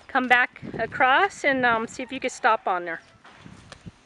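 A young woman speaks calmly and encouragingly nearby, outdoors.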